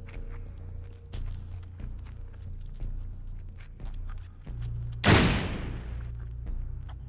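Short game sound effects click and pop.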